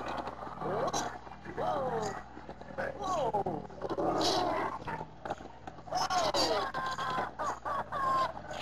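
A small creature squeals with quick, sliding cries, again and again.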